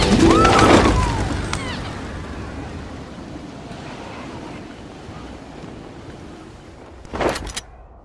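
Wind rushes past while gliding and slowly fades.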